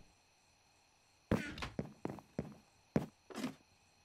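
A wooden chest lid creaks shut.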